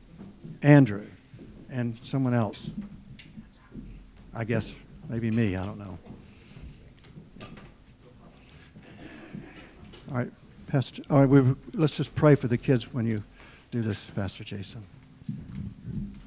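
A man speaks with animation through a microphone in a large room.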